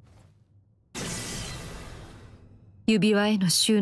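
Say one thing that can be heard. A magical shimmering whoosh swells and fades.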